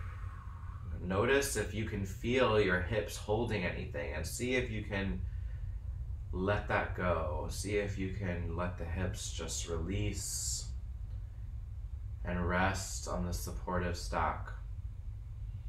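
A man speaks calmly and slowly, close by.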